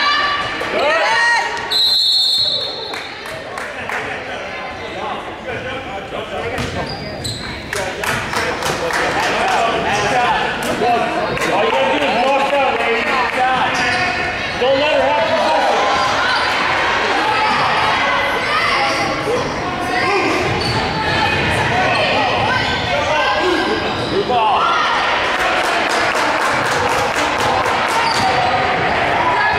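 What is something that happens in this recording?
Players' sneakers squeak on a wooden court in a large echoing gym.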